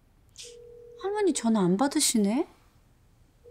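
A young woman speaks briefly into a phone, close by.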